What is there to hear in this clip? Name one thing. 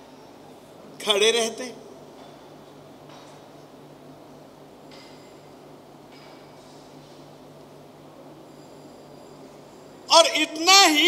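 An elderly man speaks loudly and with feeling through a microphone, in short bursts with long pauses.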